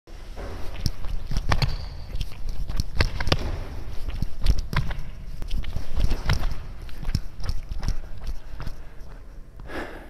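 Sneakers thump quickly on a wooden floor in an echoing hall.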